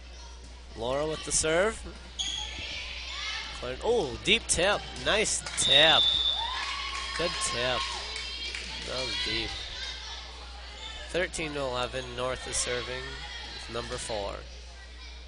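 Spectators cheer and shout.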